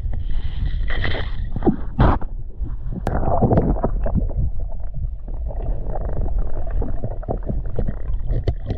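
Water swishes and gurgles close by, heard from under the surface.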